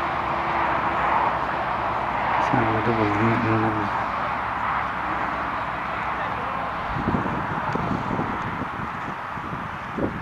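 A horse's hooves thud on grass as it canters.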